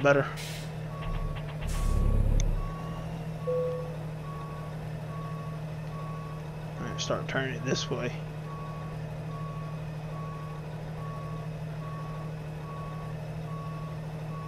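A truck engine rumbles steadily at idle.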